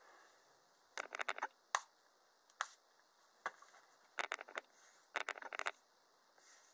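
A hairbrush strokes through hair with soft bristly scratches.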